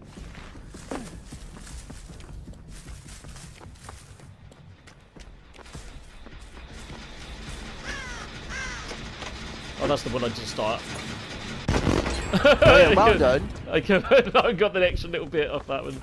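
Footsteps run through grass outdoors.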